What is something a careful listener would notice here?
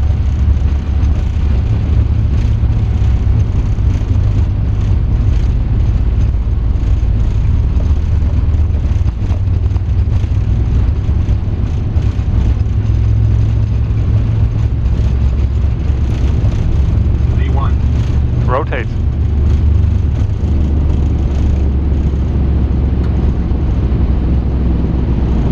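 Aircraft engines roar with a steady low rumble.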